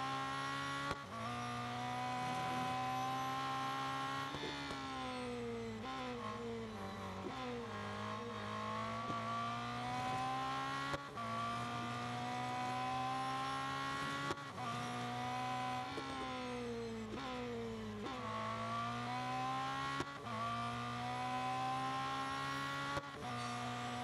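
A racing car engine pops and crackles with each gear shift.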